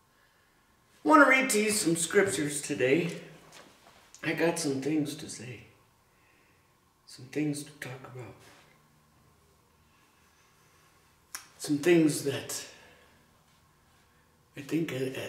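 A middle-aged man speaks calmly and closely, in short phrases with pauses.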